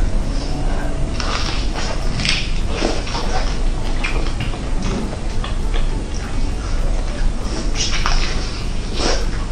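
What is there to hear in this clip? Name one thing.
A young woman chews and smacks her lips loudly and close by.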